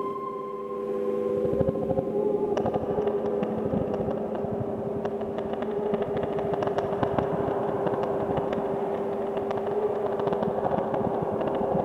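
Electronic synthesizer music plays with a steady droning tone.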